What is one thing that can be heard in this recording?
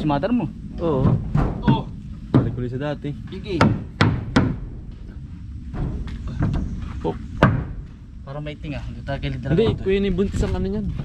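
A hammer knocks on wood.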